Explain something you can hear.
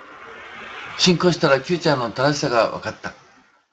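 An elderly man speaks close to the microphone.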